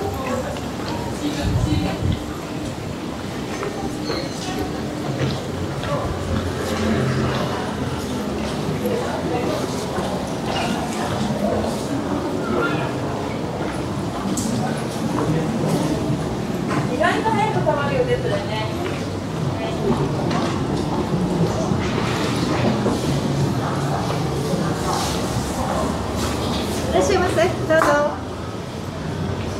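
Footsteps of passers-by patter on a paved street.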